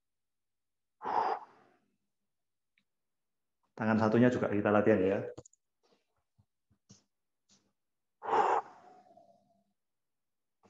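A young man speaks in short bursts, heard through an online call.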